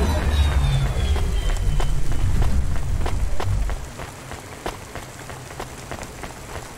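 Footsteps tap on a metal walkway.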